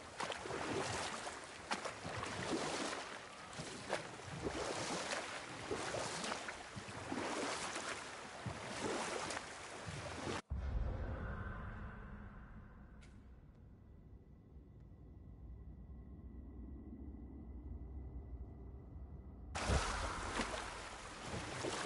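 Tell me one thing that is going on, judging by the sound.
Oars splash and water rushes as a boat moves along.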